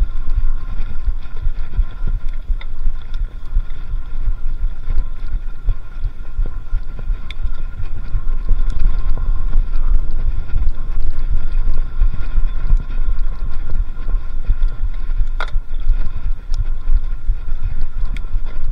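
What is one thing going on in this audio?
A bicycle frame rattles and clicks over bumps.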